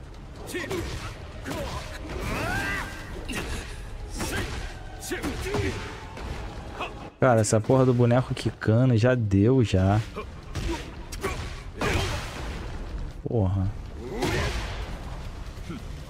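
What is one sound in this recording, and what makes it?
Punches and kicks thud and crack in a video game fight.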